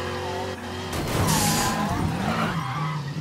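A car crashes through a metal fence with a loud rattle.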